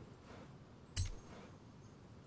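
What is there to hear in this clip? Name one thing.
A game menu makes a short sharp click as a purchase is confirmed.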